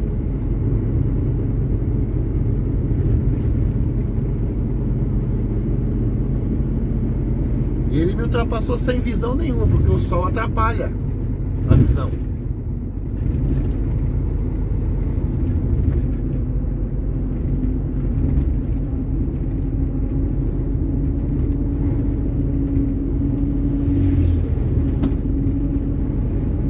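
Tyres rumble on an asphalt road.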